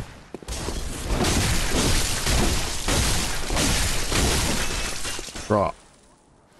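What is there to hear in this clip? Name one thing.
Metal blades slash and strike during a fight.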